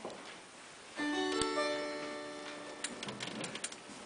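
A piano plays a chord that rings out in a large hall.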